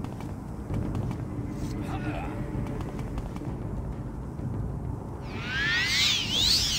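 Footsteps thud on stone ground.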